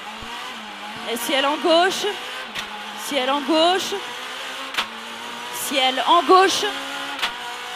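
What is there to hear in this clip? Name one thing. A rally car engine revs up hard in repeated bursts.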